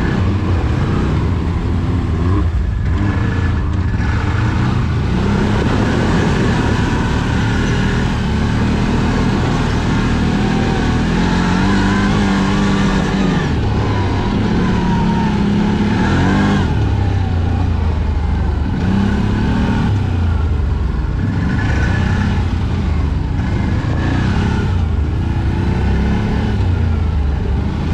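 An off-road vehicle's engine rumbles loudly up close, revving up and down.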